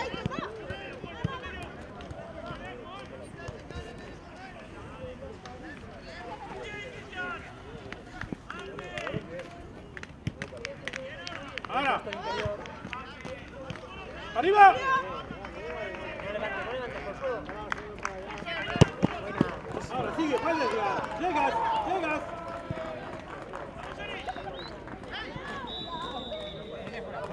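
Young players shout and call out across an open pitch.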